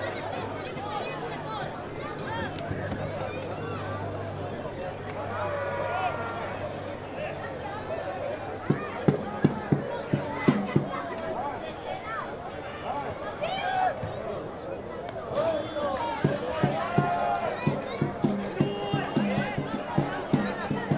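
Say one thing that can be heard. Players call out to each other across an open outdoor pitch.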